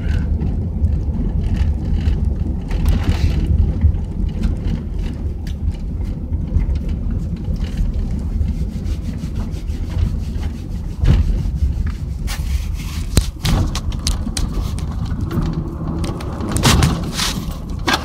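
Tyres roll over the road.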